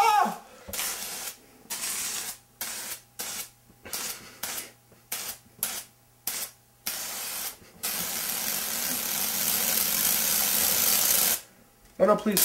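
An aerosol can sprays in short hissing bursts, then in one long hiss.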